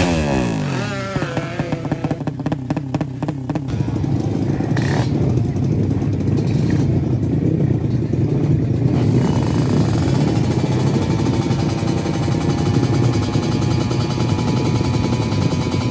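A racing motorcycle engine revs hard, then roars and rattles steadily up close.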